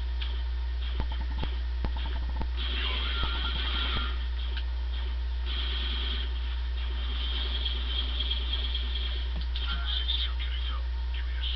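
Blaster shots from a video game crackle in quick bursts through a television speaker.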